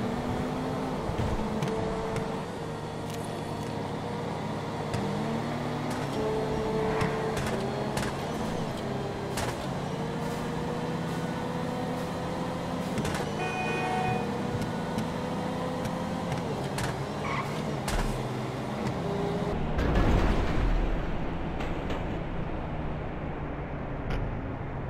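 Car engines roar steadily as several cars race along a road.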